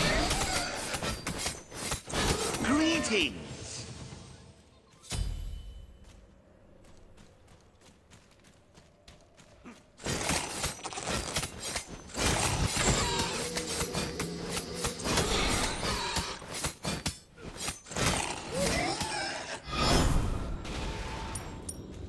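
Weapons strike with sharp hits in a video game.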